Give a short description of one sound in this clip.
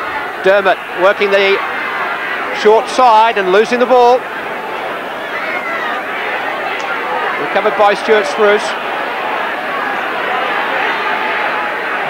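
A large crowd roars and murmurs steadily outdoors.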